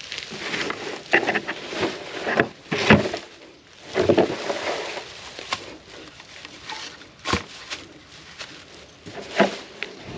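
A plastic tub scrapes and bumps against the ground.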